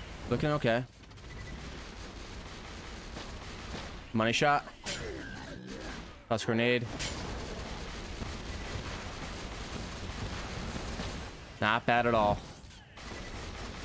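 A rapid-fire gun shoots in long bursts.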